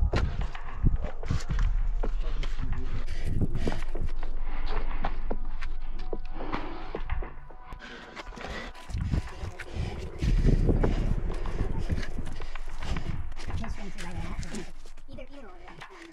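Gloved hands scrape and tap against rough rock.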